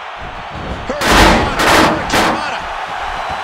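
Heavy thuds of bodies slamming onto a ring mat.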